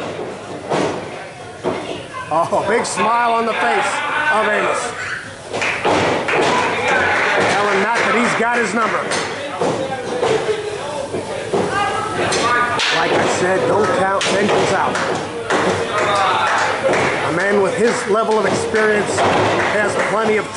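A crowd of men and women shouts and cheers in a large echoing hall.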